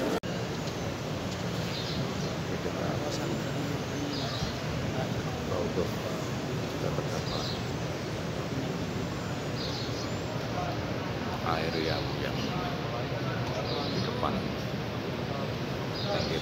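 A crowd of men murmurs softly in a large, echoing space.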